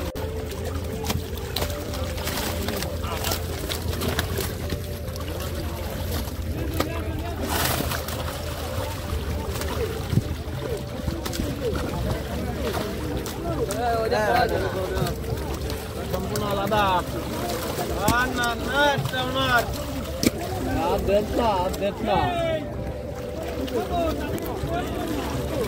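Fish thud as they drop into a basket.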